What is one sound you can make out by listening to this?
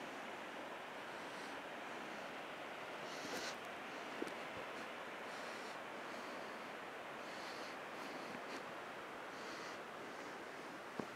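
Wind blows steadily across an open mountainside.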